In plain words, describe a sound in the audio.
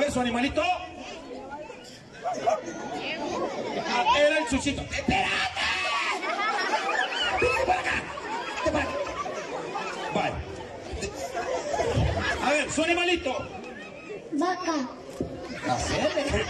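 A man speaks with animation through a microphone and loudspeakers, outdoors.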